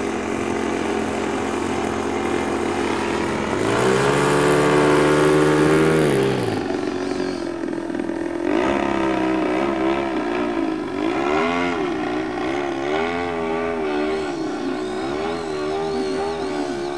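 A model plane's engine whines and buzzes overhead, rising and falling in pitch as it flies past.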